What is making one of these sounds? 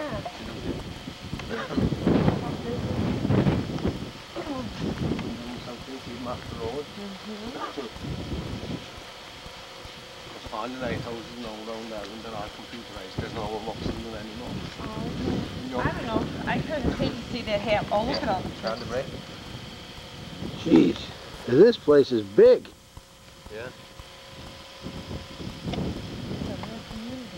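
People talk calmly close by.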